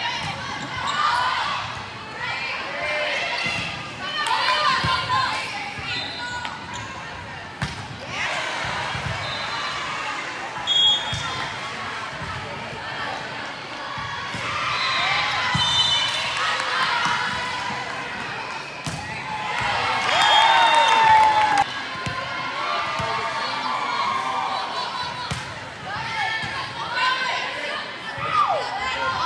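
Young women shout and call out to each other across an echoing gym.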